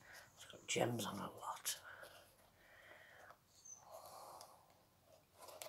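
Plastic beads click and rustle softly as a hand turns a decorated ornament.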